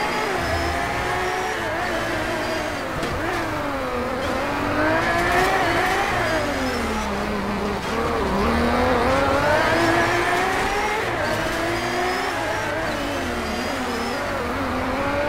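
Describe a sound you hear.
A racing car engine revs up and down as gears shift.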